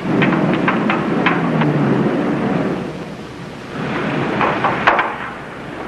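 Footsteps clank on a metal fire escape ladder.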